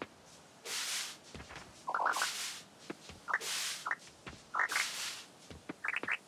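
Crops pop as they are picked, one after another.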